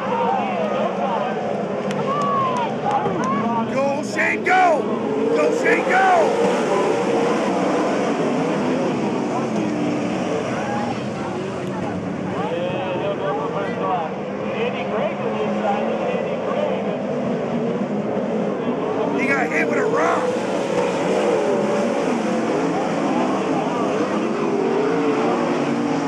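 Sprint car engines roar loudly as cars race around a dirt track.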